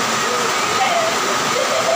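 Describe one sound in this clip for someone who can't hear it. A young woman laughs nearby.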